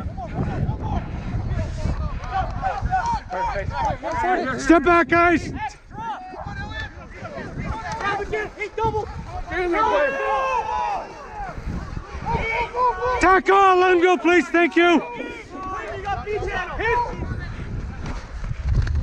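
Young men shout to each other loudly outdoors.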